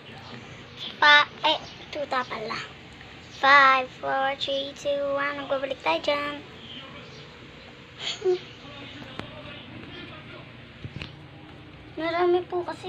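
A young girl talks playfully close to the microphone.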